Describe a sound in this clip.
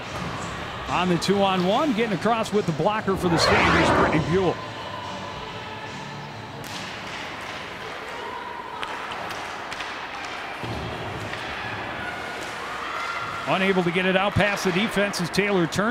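Hockey sticks click against a puck.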